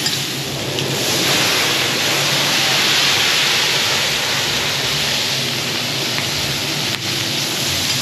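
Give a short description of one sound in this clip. Flames burst up with a whooshing roar.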